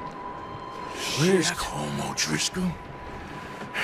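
A man shouts roughly, asking questions.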